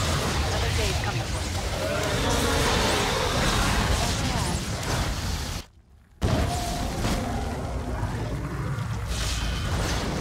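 Electric zaps crackle in sharp bursts.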